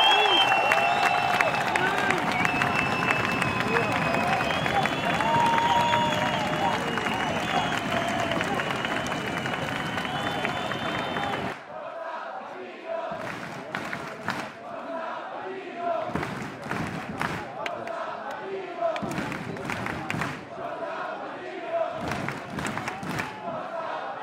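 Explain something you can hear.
A large crowd claps.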